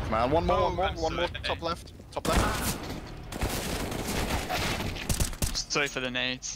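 Rapid gunshots ring out.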